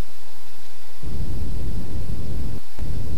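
Small thrusters hiss in short bursts.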